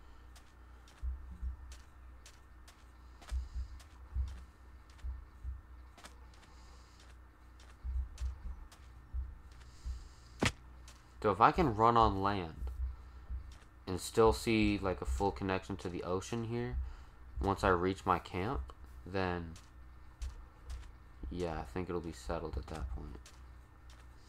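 Footsteps thud softly on stone.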